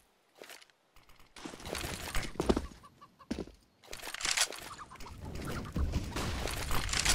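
A thrown grenade bursts and hisses loudly.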